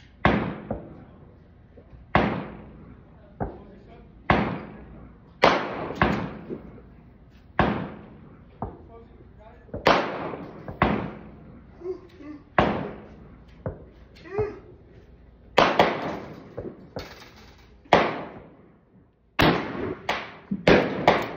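Rifle shots crack one after another, each followed by a short echo.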